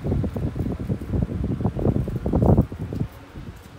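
Leaves and a mat rustle loudly up close.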